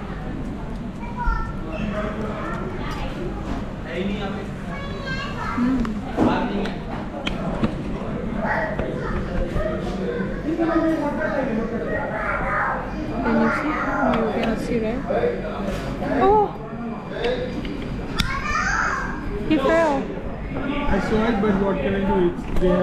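A young woman talks close to the microphone, addressing the listener.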